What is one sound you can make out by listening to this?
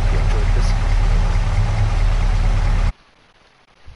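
A pickup truck engine rumbles at idle, then cuts off suddenly.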